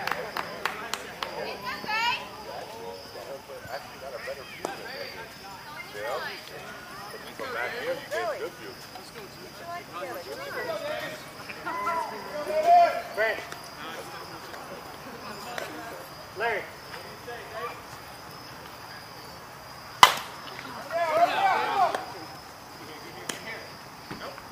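Men call out and chat across an open field.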